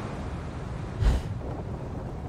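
A heavy thud sounds as something lands.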